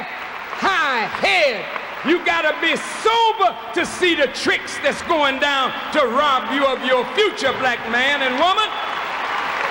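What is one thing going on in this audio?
A man speaks forcefully through a microphone in a large hall.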